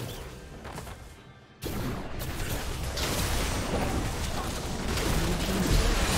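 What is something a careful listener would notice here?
Combat sound effects of spells and hits crackle and boom.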